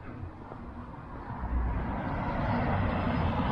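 A car drives past close by on the street.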